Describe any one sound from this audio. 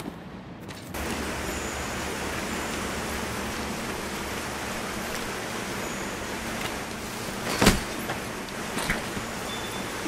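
Water rushes steadily, echoing in a cave.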